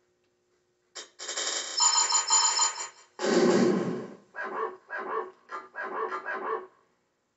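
A game's score counter ticks and chimes as points add up.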